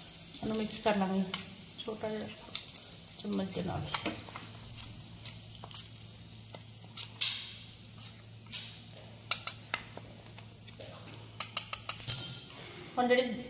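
A metal spoon clinks and scrapes against a metal pan.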